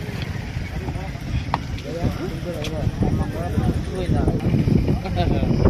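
Several men talk with one another nearby, outdoors.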